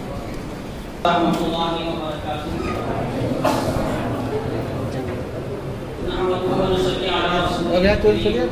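A man chants in a drawn-out voice through a microphone and loudspeaker.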